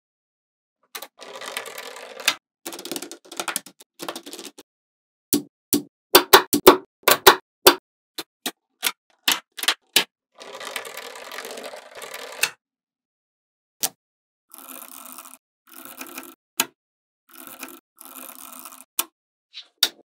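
Magnetic balls rattle and slide against each other.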